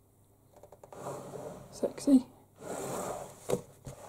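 Glossy paper pages rustle as they are handled and turned.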